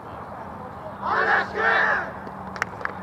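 Young men shout together in a team cheer outdoors.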